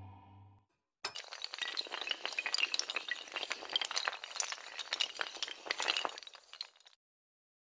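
Dominoes clatter rapidly as they topple in a chain.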